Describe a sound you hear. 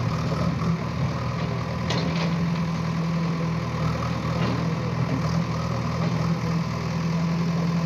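A backhoe engine rumbles steadily nearby.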